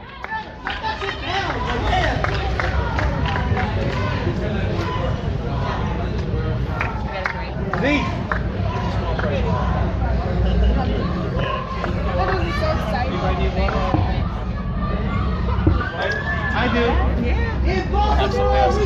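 A crowd chants and cheers, echoing in a large hall.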